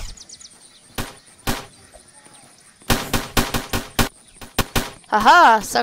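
Rapid gunshots fire in short bursts.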